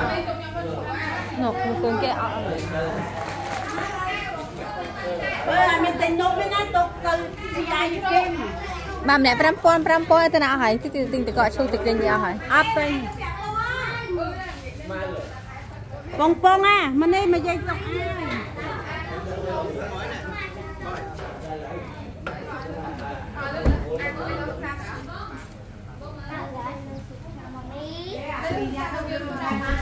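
Several women and children talk and call out close by.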